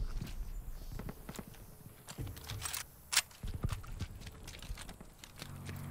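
Metal clicks and clacks as a rifle is handled and swapped.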